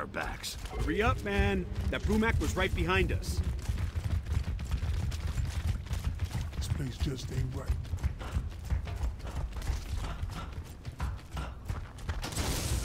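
Heavy armoured footsteps thud quickly on hard ground.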